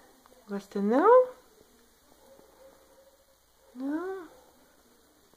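A cat meows loudly, twice, close by.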